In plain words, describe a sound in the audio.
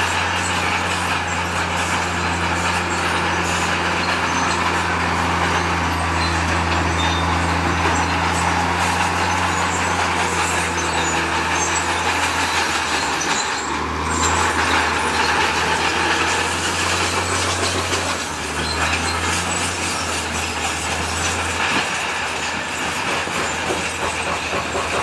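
A bulldozer's diesel engine rumbles steadily, close by.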